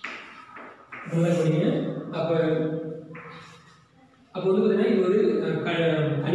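A man speaks calmly and clearly in a room with some echo.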